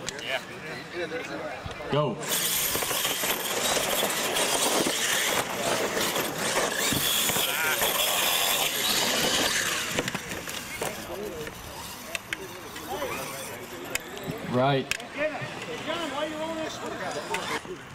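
Small electric motors whine as toy trucks race and jump.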